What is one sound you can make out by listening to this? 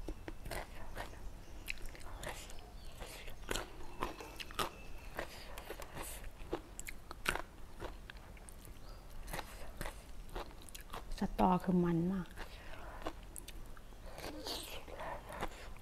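A young woman eats noisily close to a microphone, with wet chewing and smacking sounds.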